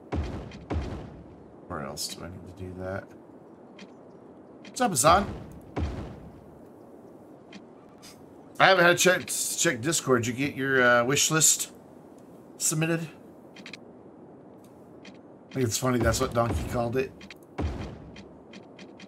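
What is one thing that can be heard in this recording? A man talks casually into a close microphone, in bursts with pauses.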